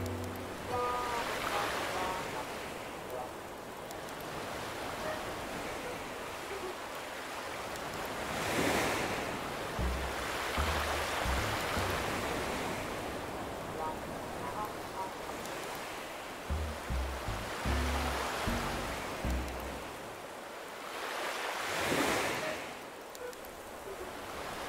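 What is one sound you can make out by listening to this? Gentle waves wash onto a beach in slow swells.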